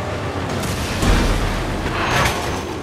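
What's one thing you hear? A big explosion booms.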